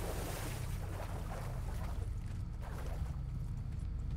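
A man wades through water.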